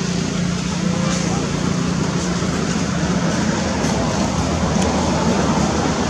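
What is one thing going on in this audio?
Leaves rustle as a monkey climbs through tree branches.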